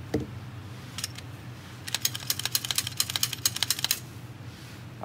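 Cartridges click one after another into a pistol magazine.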